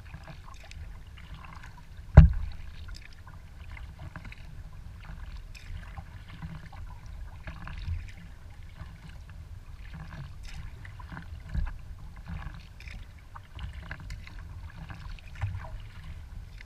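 Water splashes and laps against the hull of a kayak as it glides.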